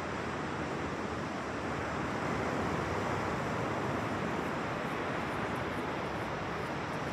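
Ocean surf washes onto a beach in the distance.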